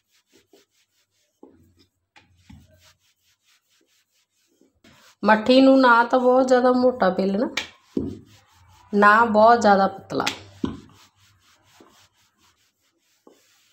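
A rolling pin rolls and thuds softly on a wooden board.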